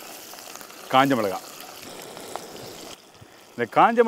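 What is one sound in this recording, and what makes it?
Oil sizzles and bubbles in a pot.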